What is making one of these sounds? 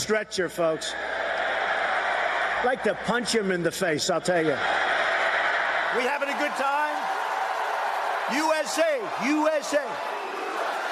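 A man speaks forcefully through a microphone and loudspeakers in a large echoing space.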